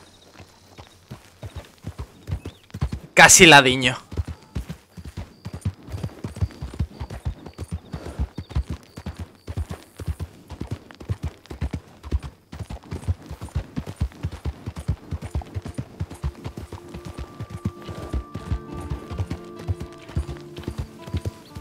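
A horse's hooves clop quickly along a dirt track.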